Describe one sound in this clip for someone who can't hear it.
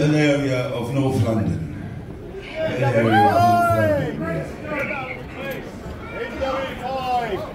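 A man talks animatedly into a microphone, heard over loudspeakers in a large hall.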